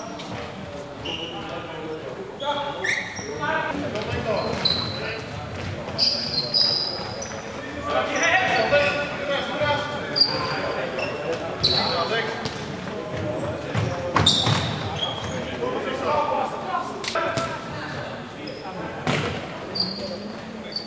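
Shoes squeak sharply on a hard floor in a large echoing hall.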